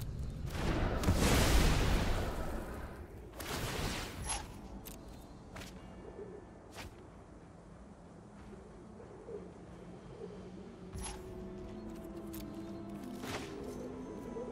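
A card game's sound effects whoosh and click.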